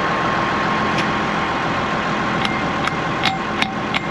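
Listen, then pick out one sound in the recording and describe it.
A hammer taps on a metal shaft.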